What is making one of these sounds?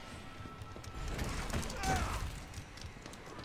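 A grenade explodes with a loud blast.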